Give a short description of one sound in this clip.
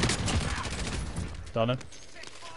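Rapid gunfire rattles loudly.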